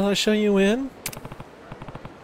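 A man speaks briefly in a calm voice.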